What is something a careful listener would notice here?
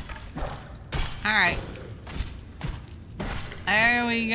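Sword blows land with sharp, wet thuds.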